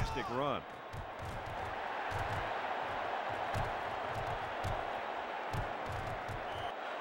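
Players' footsteps thud quickly on turf.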